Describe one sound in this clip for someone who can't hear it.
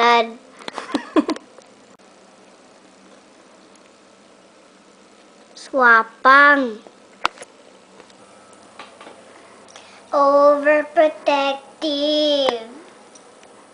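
A young girl talks close by in a playful voice.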